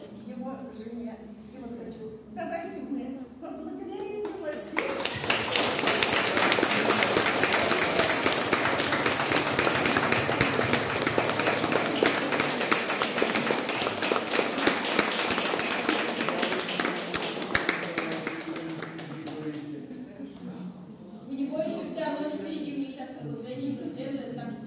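An accordion plays a lively tune.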